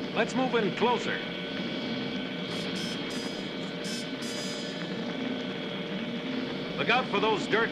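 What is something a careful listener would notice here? Jet sleds roar past in flight.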